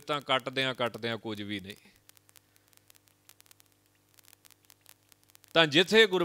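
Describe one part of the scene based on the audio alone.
A man speaks calmly into a microphone, in a steady preaching tone.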